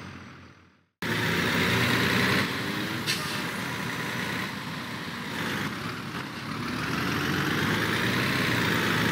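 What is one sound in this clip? Trucks' engines drone steadily on a road.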